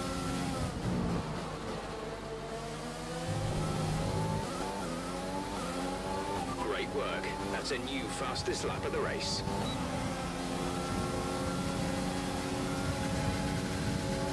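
A racing car engine whines at high revs, rising and dropping as gears shift.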